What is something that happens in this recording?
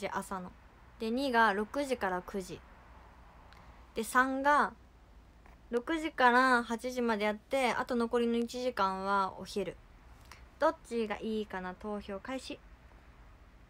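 A young woman speaks calmly and close to a microphone, with short pauses.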